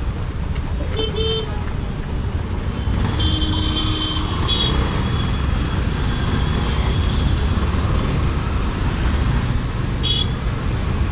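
Horns honk briefly in traffic.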